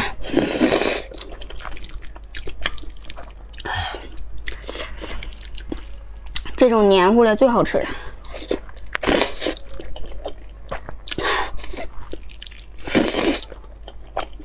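A young woman loudly slurps noodles close to a microphone.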